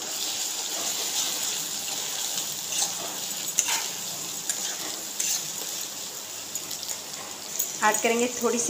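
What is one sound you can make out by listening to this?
A metal spatula stirs and scrapes against an iron wok.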